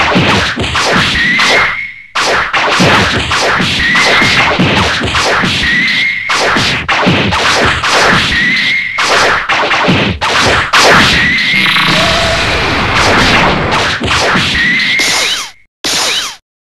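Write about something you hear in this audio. Punches and kicks land with sharp thuds and whooshes in a fighting game.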